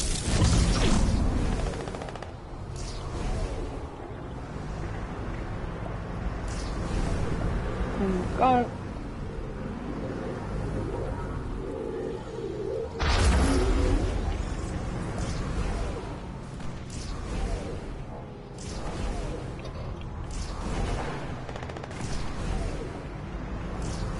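A deep whooshing roar surges and swirls.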